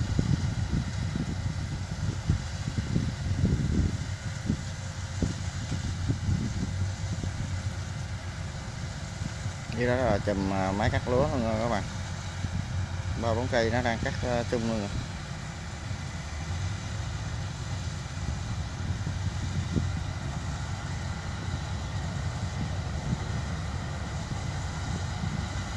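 A combine harvester engine rumbles steadily outdoors.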